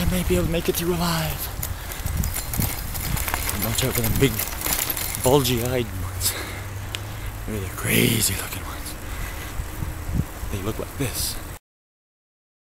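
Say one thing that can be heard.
A middle-aged man talks with animation close to the microphone, outdoors.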